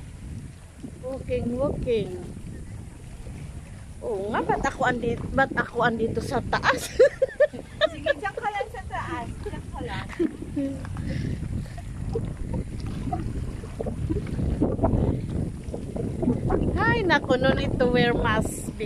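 Young women chat and call out nearby, outdoors.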